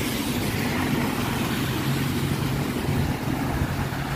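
Car tyres swish through water on a wet road.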